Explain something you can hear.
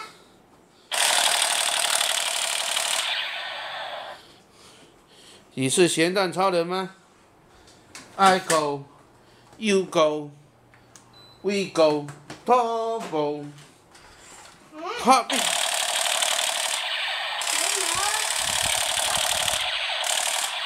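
A toy blaster gun blares a loud buzzing electronic sound effect.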